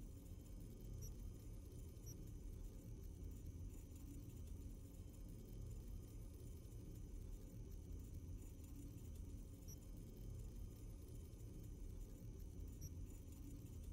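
Soft electronic menu blips sound now and then.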